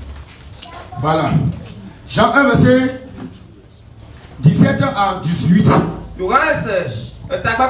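A man preaches loudly and with animation through a microphone.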